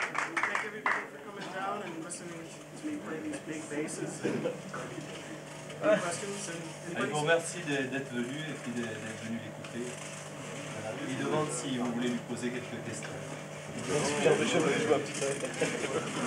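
A man talks casually.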